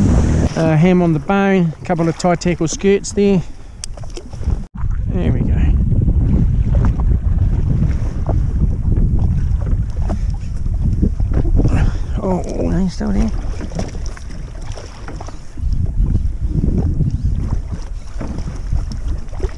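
Waves slap against a small boat's hull.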